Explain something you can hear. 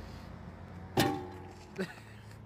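A metal sign post clangs as it is kicked.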